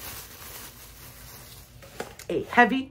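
Bubble wrap crinkles in a woman's hands.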